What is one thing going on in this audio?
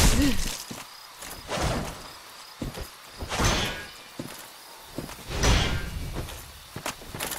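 Metal armour clanks with heavy footsteps.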